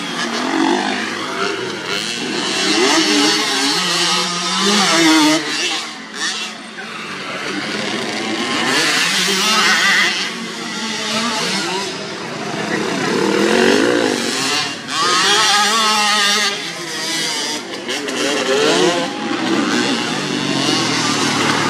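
A small dirt bike engine revs and whines up and down.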